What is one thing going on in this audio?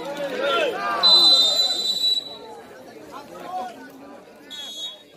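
A referee's whistle blows shrill blasts.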